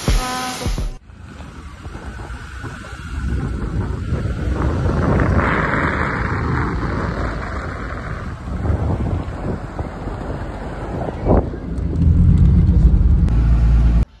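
A car engine runs and rumbles nearby.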